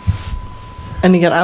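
A woman speaks through a microphone.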